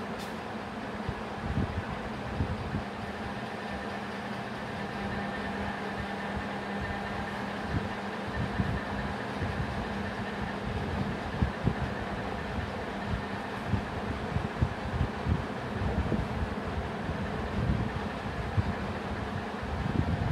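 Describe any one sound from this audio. A marker taps and scratches on a whiteboard.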